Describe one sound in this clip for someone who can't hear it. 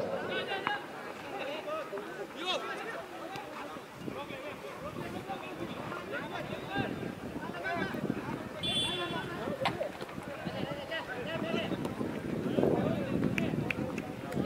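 Young men call out to each other across an open field.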